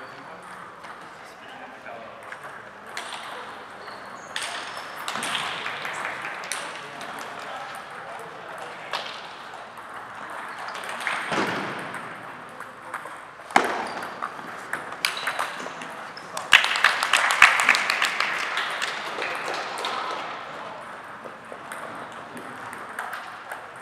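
A table tennis ball clicks back and forth on paddles and a table in a large echoing hall.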